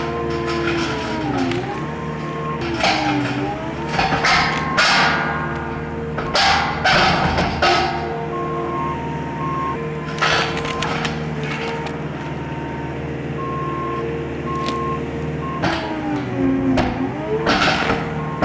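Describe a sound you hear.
Hydraulics whine as a loader's arm lifts and tilts.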